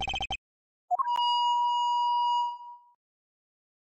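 A whistle blows with a long, shrill note.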